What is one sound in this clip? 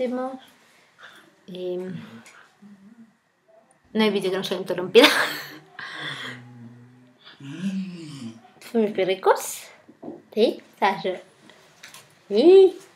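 A young woman talks casually close to a microphone.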